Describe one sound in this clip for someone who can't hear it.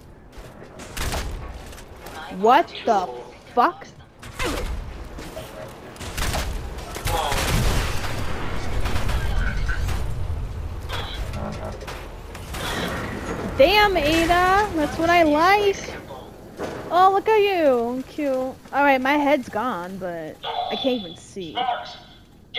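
A heavy gun fires loud, booming blasts.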